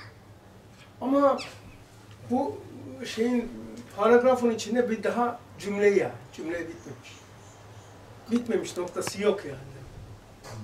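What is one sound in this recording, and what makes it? An elderly man speaks calmly, pausing between phrases.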